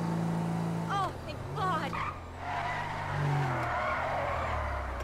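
Car tyres screech in a skid.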